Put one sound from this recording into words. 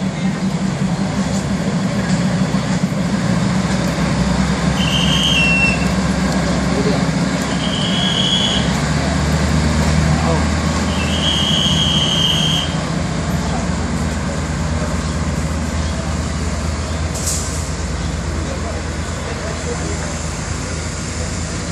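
A diesel railcar train rumbles as it pulls away on the tracks.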